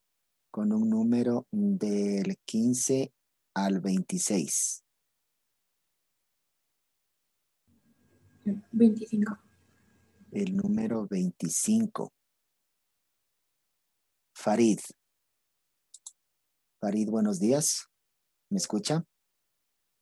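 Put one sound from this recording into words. A young woman speaks through an online call, in short bursts with pauses.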